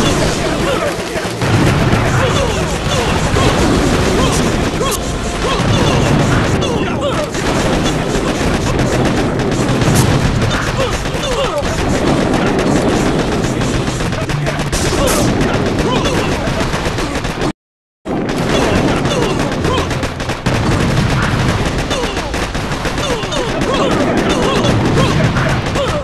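Gunfire crackles rapidly and without pause.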